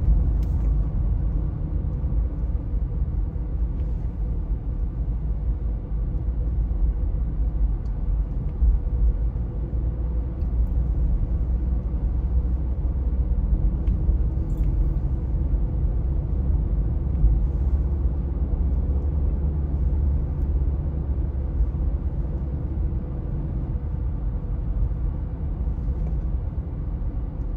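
A car engine hums steadily with low road rumble from inside the moving car.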